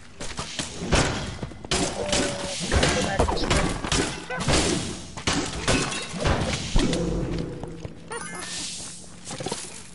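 Magic blasts burst with loud booms.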